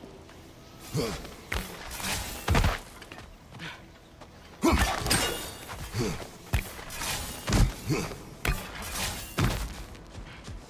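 Hands and feet scrape and thud against rock.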